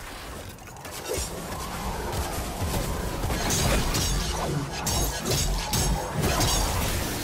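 Gunfire and blasts boom in a video game.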